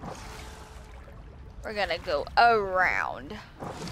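Water splashes as a swimmer breaks the surface and paddles.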